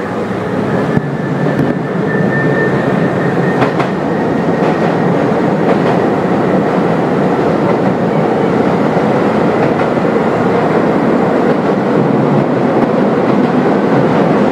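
A train's wheels roll louder and more hollowly over a metal bridge.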